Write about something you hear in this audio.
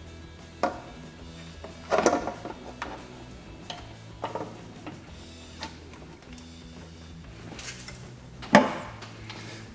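Metal parts click and clink under hands.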